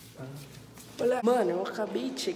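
A teenage boy talks close by.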